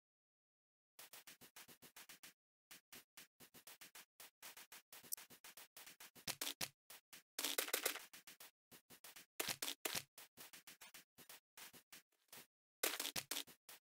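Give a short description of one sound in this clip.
Rapid footsteps crunch on sand and grass.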